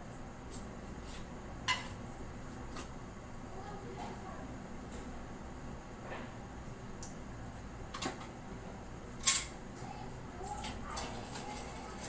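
Metal utensils clink and clatter against each other.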